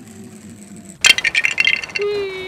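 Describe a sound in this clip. A toy car crashes and shatters into pieces with a loud clatter.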